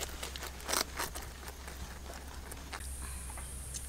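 Rabbits crunch on cabbage leaves.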